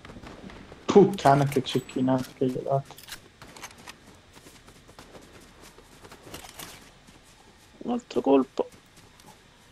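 A man talks close to a microphone, with animation.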